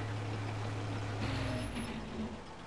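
A heavy tank engine rumbles.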